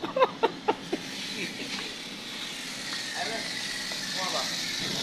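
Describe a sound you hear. Water from a hose sprays and splashes onto a car.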